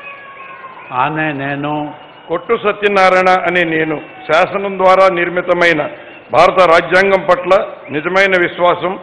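A middle-aged man speaks steadily through a microphone and loudspeakers, in short phrases.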